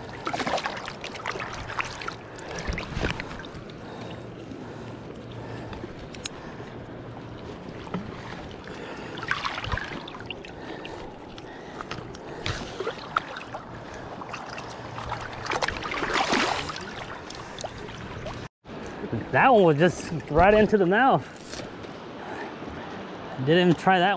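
River water rushes and gurgles close by.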